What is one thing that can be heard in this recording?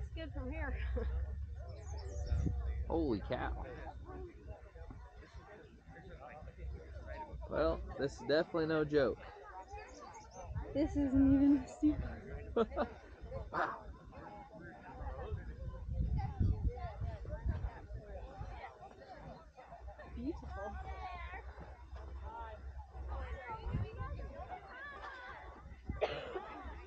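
Men, women and children talk and call out at a distance outdoors.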